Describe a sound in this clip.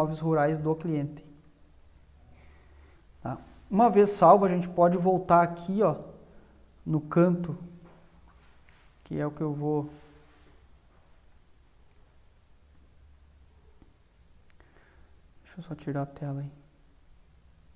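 A young man speaks calmly into a close microphone, with pauses.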